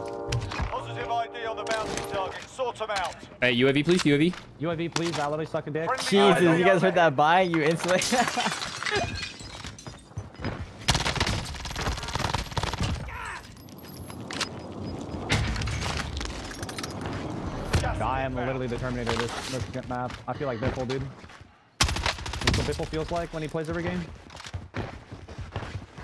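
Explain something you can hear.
A young man talks with animation into a headset microphone.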